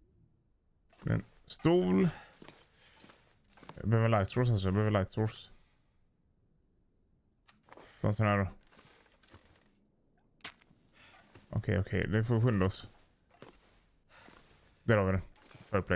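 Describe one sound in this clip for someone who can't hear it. A young man talks calmly in short bursts into a close microphone.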